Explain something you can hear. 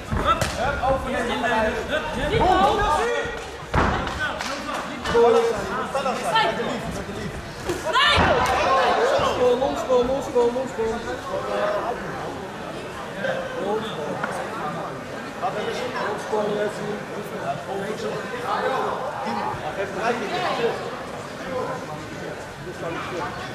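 A crowd cheers and shouts in a large echoing hall.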